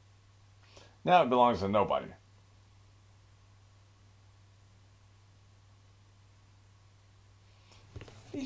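An elderly man speaks calmly, close to the microphone.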